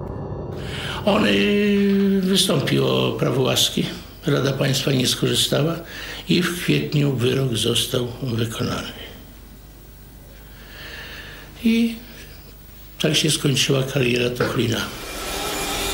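An elderly man speaks calmly and seriously, close by.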